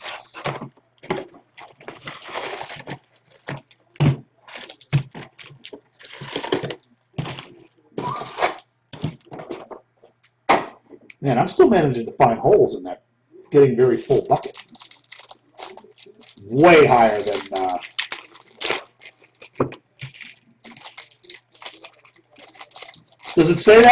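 Cardboard packs rustle and crinkle as a man opens them.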